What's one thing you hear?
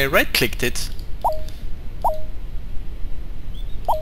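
A game menu gives a short blip as an item is selected.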